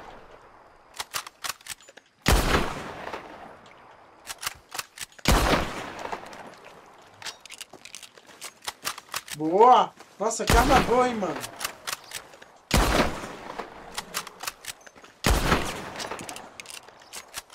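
A rifle lever clicks as it is worked between shots.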